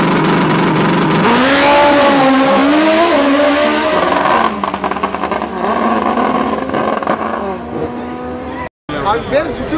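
Motorcycle engines roar loudly and rev up as they race off.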